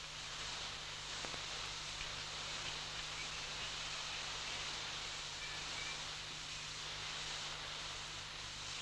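A gas canister hisses steadily.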